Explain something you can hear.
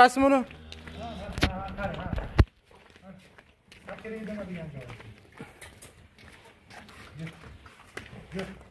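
Cow hooves clop on concrete.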